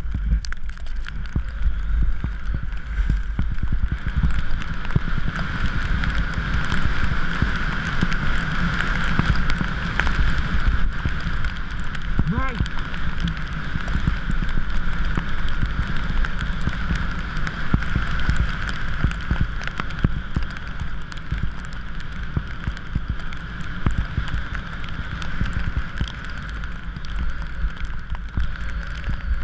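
Skis hiss and scrape over snow.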